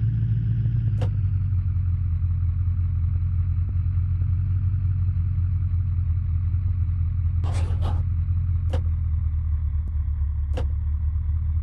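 A car's suspension knocks sharply over rocks.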